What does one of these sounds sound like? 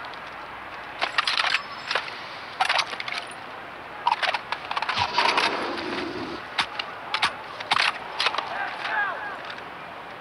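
A rifle is reloaded with a series of sharp metallic clicks and clacks.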